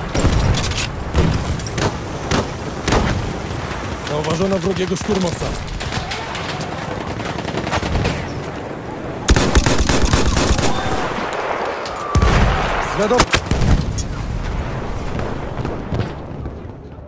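Gunfire rattles in the distance.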